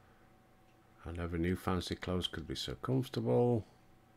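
An older man speaks close to a headset microphone.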